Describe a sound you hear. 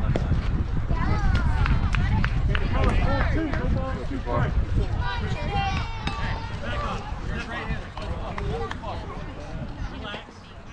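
Young players shout and cheer from a distance.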